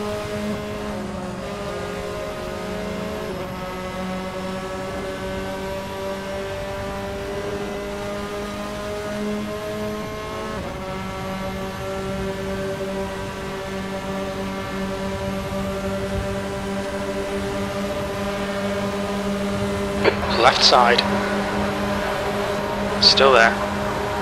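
A racing car engine hums at a steady high pitch, shifting gear now and then.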